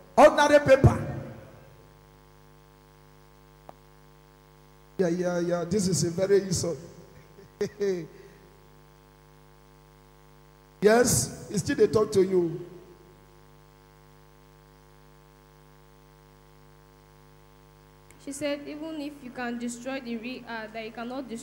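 A man speaks with animation into a microphone through loudspeakers in an echoing hall.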